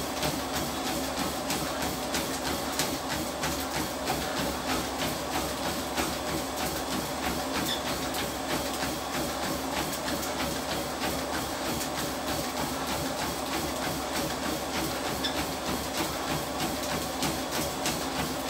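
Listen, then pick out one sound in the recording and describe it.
A treadmill motor hums steadily.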